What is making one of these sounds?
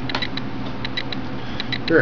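A die clacks on a table.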